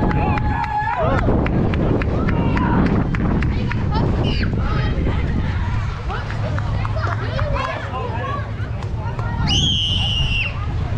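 Young children shout and call out across an open outdoor field.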